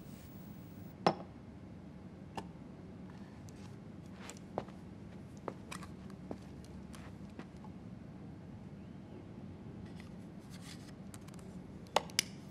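Small objects click and tap on a table.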